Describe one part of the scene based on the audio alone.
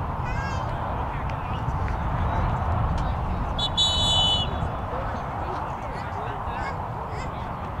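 Young men call out to each other in the distance.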